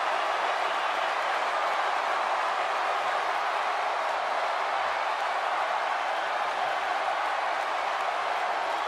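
A large crowd cheers and roars steadily.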